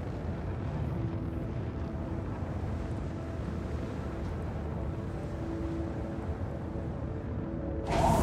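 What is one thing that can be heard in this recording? A spacecraft's engines hum steadily and low as it hovers and descends.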